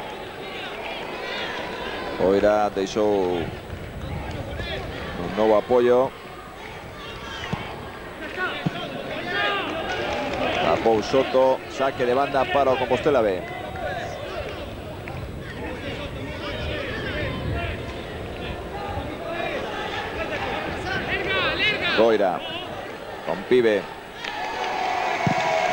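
A crowd in a large open stadium murmurs and cheers steadily.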